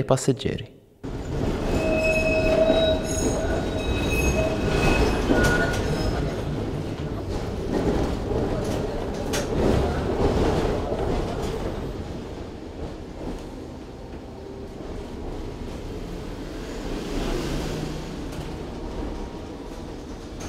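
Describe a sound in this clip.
A tram rumbles and rattles along its rails.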